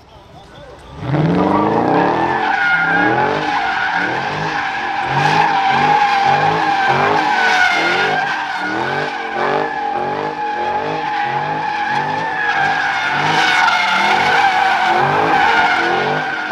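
Tyres screech loudly on asphalt.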